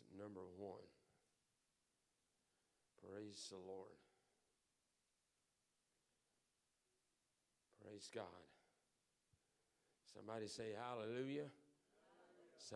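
A man speaks into a microphone in short phrases with pauses, in an echoing hall.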